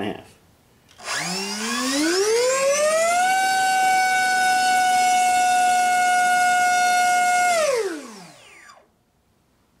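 An electric motor spins up a propeller to a steady high whine, then winds down.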